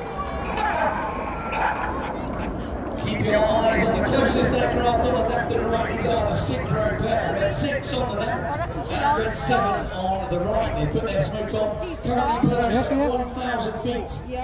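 A crowd of men and women chatter and exclaim nearby outdoors.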